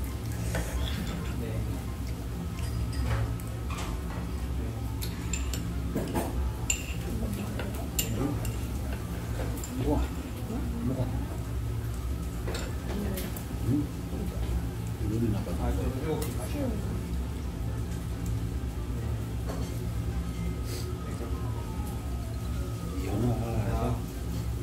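Chopsticks click against a plate.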